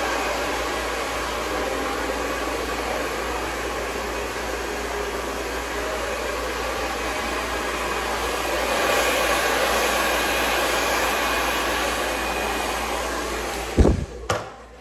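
A hair dryer blows with a loud, steady roar close by.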